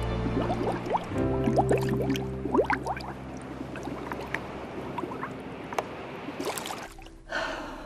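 Water bubbles underwater.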